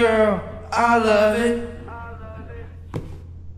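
A woman speaks with animation.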